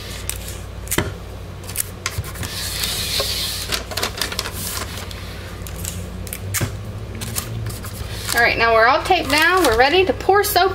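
Paper taps and scrapes against wood.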